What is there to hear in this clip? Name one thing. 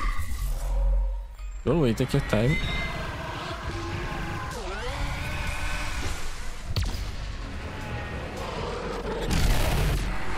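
Game shots and fiery blasts crackle and boom.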